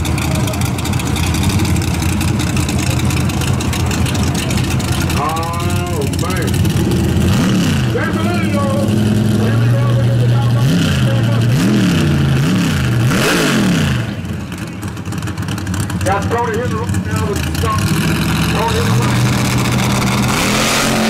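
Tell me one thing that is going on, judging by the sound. A loud race car engine idles with a deep, rough rumble.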